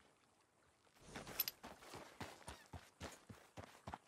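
A horse's hooves clop steadily on gravel.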